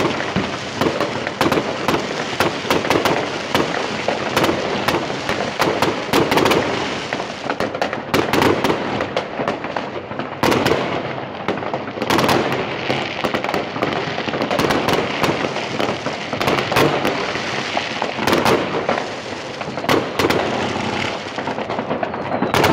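Fireworks bang and crackle continuously nearby and in the distance.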